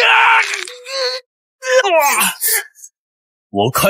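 A man cries out in anguish.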